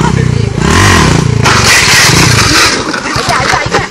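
A motorcycle crashes down onto a dirt road with a thud.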